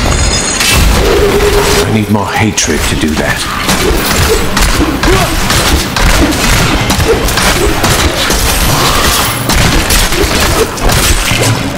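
Weapons clash and strike in a fast fight.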